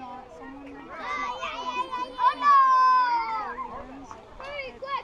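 A crowd of children cheers loudly.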